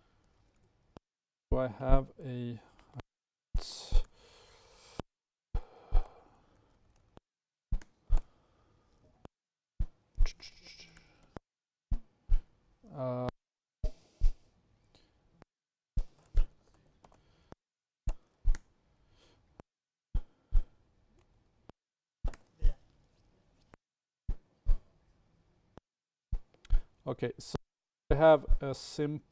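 Keys click as a man types on a laptop.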